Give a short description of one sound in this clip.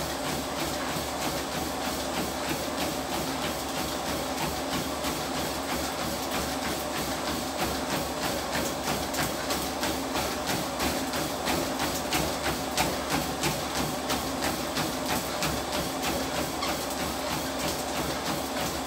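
Feet pound rapidly and steadily on a treadmill belt.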